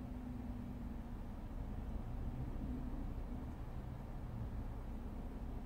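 A car drives past slowly nearby.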